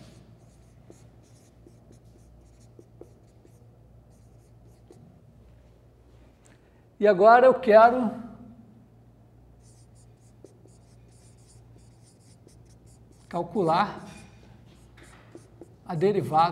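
A marker squeaks faintly across a whiteboard.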